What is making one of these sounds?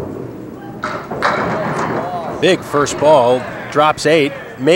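Bowling pins clatter as they are knocked down.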